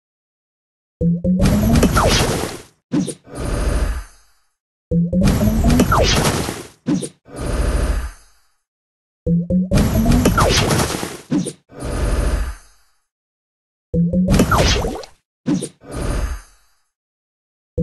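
Game pieces pop and burst with bright, swooshing sound effects in repeated bursts.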